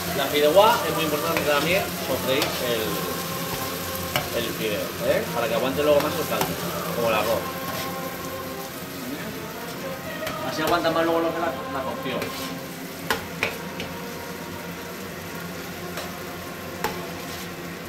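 A metal spoon scrapes and taps against a pan.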